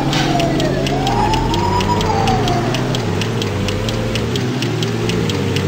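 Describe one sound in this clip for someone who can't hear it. A car engine hums and revs as it drives.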